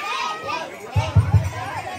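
A hand drum is beaten with low thumps.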